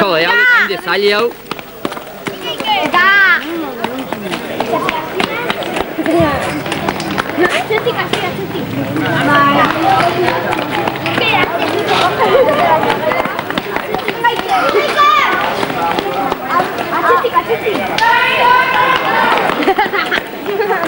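A crowd of children and adults chatters and shouts outdoors.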